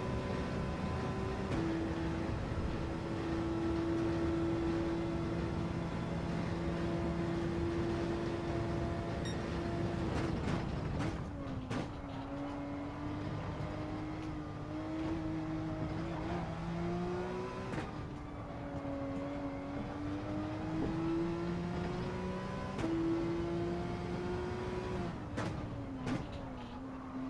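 A racing car engine roars at high revs, dropping and rising as it shifts gears.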